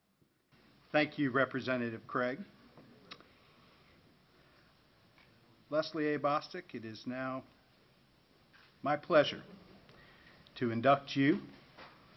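A man speaks calmly into a microphone in short phrases, with pauses.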